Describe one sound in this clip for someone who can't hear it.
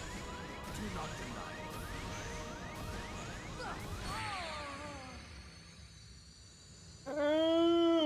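Game battle effects whoosh and clash loudly.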